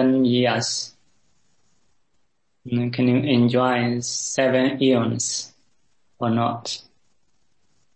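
A man speaks calmly and warmly over an online call.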